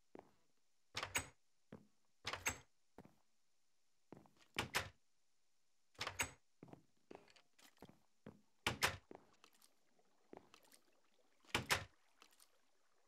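Wooden doors open and shut with hollow knocks.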